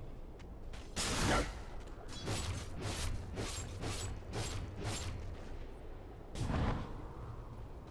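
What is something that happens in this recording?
Magic spells blast and crackle in quick bursts during a fight.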